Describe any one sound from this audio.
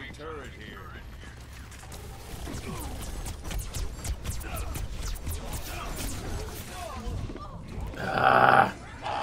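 Gunfire from a game rattles in quick bursts.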